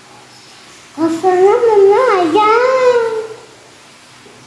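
A young boy makes a long, wavering sound of delight nearby.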